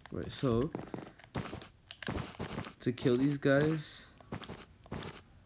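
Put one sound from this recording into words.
Blocks are placed one after another with short soft thuds.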